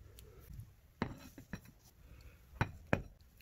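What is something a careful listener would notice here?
Metal rails knock down onto a wooden table.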